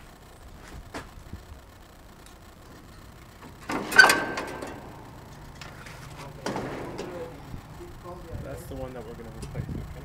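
Hard plastic and metal parts knock and clatter close by.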